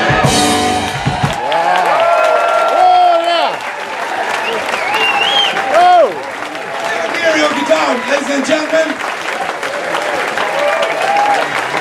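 A live band plays guitars and fiddle loudly in a large room.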